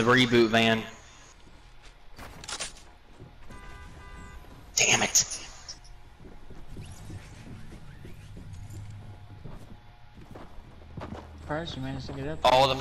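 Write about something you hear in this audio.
Footsteps thud quickly across wooden floors and stairs.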